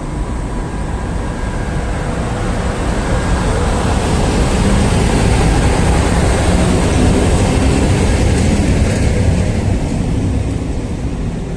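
Train wheels rumble and clatter over the rails close by.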